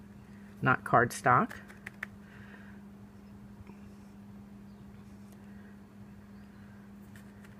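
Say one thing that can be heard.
A small plastic jar dabs and taps softly on paper.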